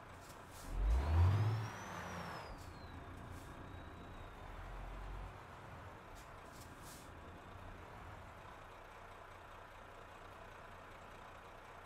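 A truck engine rumbles low as the truck rolls slowly forward.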